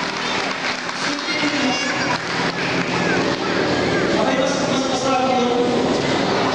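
A large seated crowd chatters all around under an echoing roof.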